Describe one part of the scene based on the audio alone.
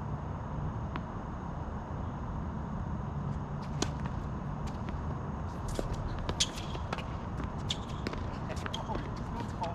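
Paddles hit a ball back and forth with sharp pops outdoors.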